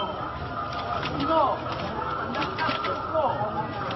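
A plastic sack rustles.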